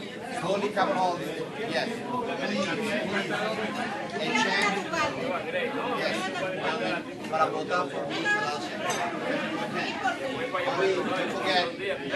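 Many people chatter at once in a busy, echoing room.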